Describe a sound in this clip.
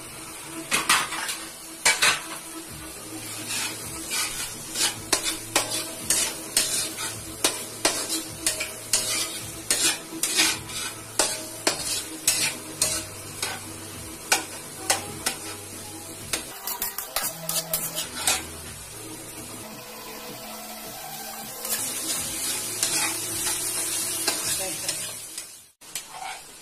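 Food sizzles in a hot wok.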